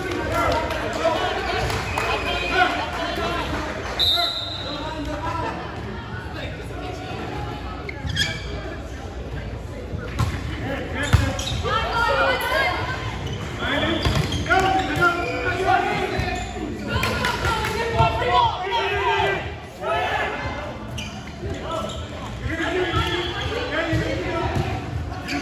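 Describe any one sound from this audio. Young men call out and talk across a large echoing gym.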